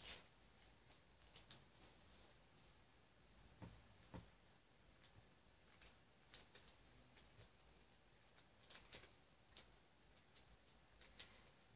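Plastic card wrappers crinkle and rustle close by.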